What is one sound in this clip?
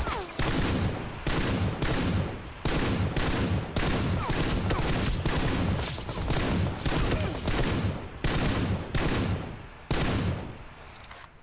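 Rifle shots crack in rapid repeated bursts, echoing outdoors.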